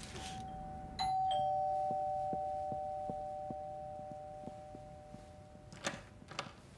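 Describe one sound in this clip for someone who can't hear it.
A doorbell chimes.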